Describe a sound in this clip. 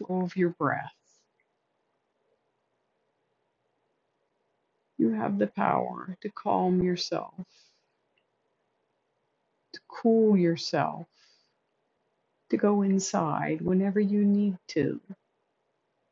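A woman speaks calmly and softly into a close microphone, with long pauses.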